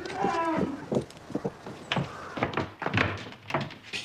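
A woman knocks on a wooden door.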